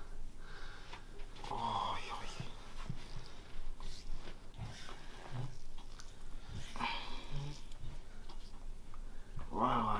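Hands rub and slap on oiled skin.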